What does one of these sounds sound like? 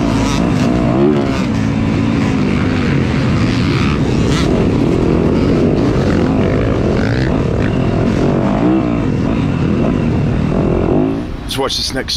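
Dirt bike engines rev and roar loudly close by.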